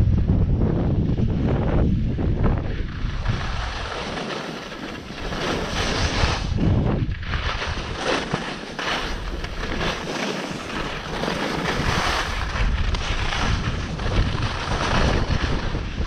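Skis scrape and carve across groomed snow.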